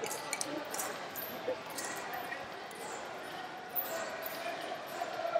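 Sneakers squeak on a mat.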